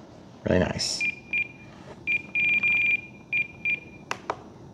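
A radio controller beeps in short bursts as its buttons are pressed.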